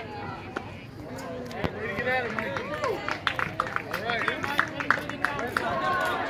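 Spectators clap their hands outdoors.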